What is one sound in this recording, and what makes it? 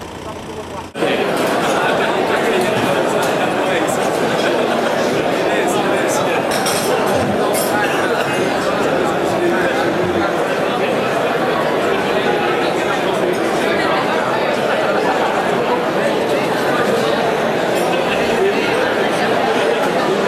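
A crowd of diners chatters in a large hall.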